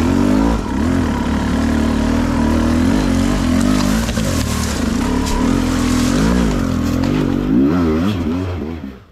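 Dry leaves crunch under tyres.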